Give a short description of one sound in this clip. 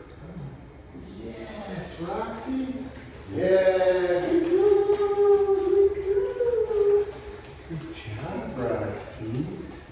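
A man's footsteps tap on a hard floor.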